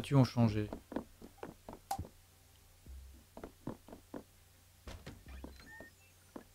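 A young man talks calmly into a close microphone.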